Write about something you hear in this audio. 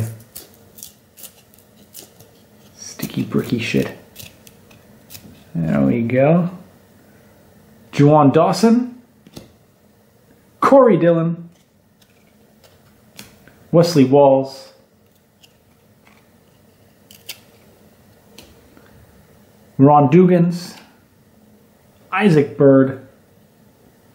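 Stiff trading cards rustle and click as they are flipped by hand.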